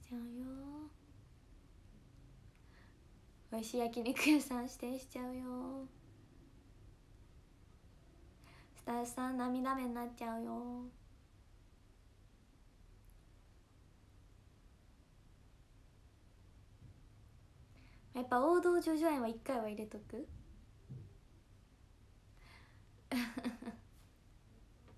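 A young woman speaks close to a microphone, in short lively bursts with pauses.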